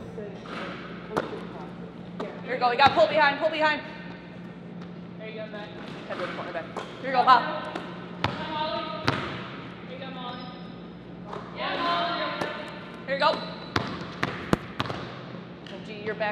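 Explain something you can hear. Basketballs thud and bounce on a wooden floor in a large echoing hall.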